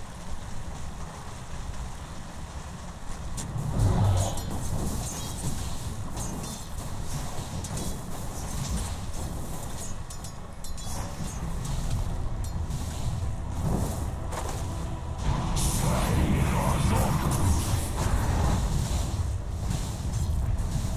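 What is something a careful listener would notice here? Spell effects crackle and clash in a fast fight.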